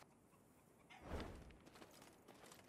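A paper scroll rolls shut with a soft whoosh.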